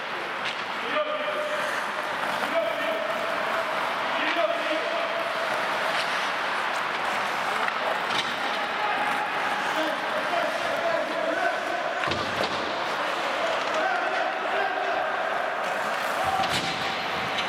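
Hockey sticks clack against a puck.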